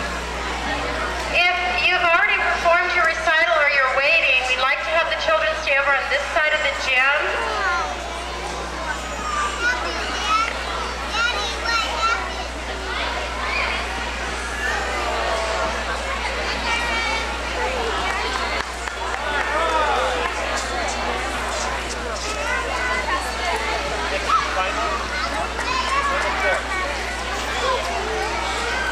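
Young girls chatter and call out in a large echoing hall.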